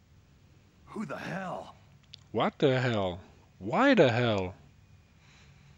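A man exclaims in surprise.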